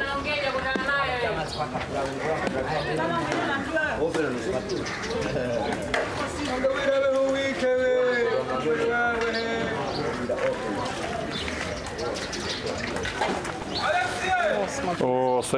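A man talks casually close by, outdoors.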